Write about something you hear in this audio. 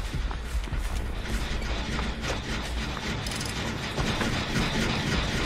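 Footsteps run through rustling grass.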